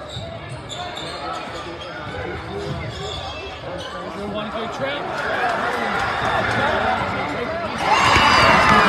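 A large crowd murmurs and calls out in an echoing gym.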